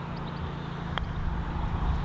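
A golf club strikes a ball with a short, crisp click.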